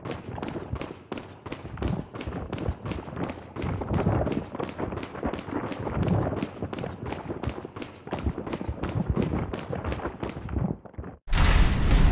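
Footsteps tread quickly and evenly across a stone floor in a large echoing hall.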